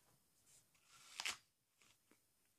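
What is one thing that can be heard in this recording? A young woman bites into a crisp apple with a loud crunch.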